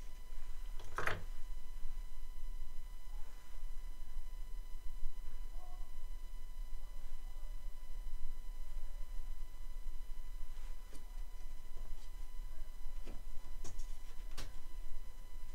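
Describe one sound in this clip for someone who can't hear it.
Small wooden pieces click against each other.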